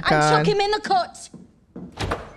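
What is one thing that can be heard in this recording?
A woman speaks in a film's soundtrack.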